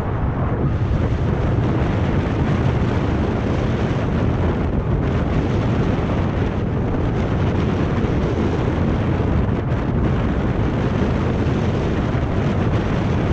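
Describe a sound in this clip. Bicycle tyres hum along a paved road.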